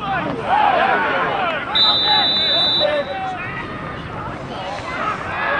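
A small crowd of spectators shouts outdoors.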